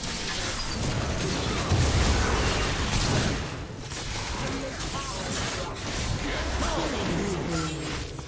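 Magic blasts and weapon strikes crackle and boom in a busy fight.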